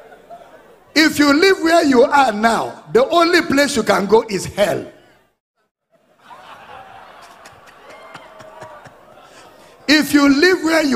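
A man preaches loudly and with animation through a microphone.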